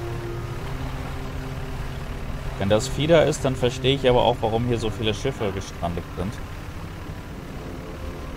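A small boat motor hums steadily.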